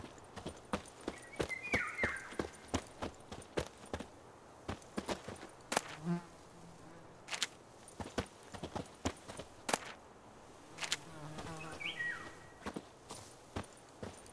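Footsteps tread steadily over grass and dirt.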